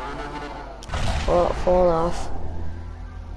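A motorcycle crashes with a loud scraping thud.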